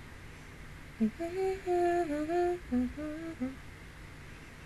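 A young woman sings softly into a close microphone.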